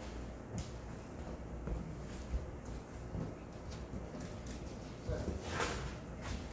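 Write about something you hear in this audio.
Footsteps shuffle on a hard floor.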